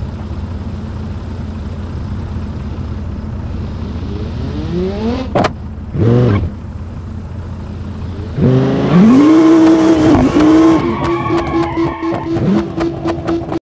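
A car engine idles, then revs up and roars as the car accelerates hard.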